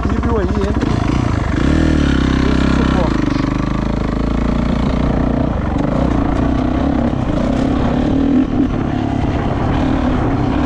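A dirt bike engine revs up and roars as the bike rides off over dirt.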